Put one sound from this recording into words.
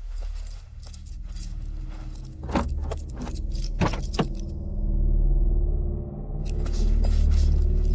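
A car door latch clicks and the door creaks open.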